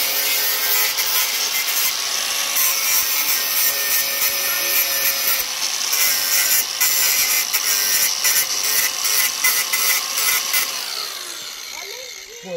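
An angle grinder cuts metal with a loud, steady whine.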